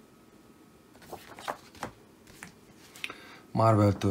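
Glossy paper pages rustle and slide as comic books are handled.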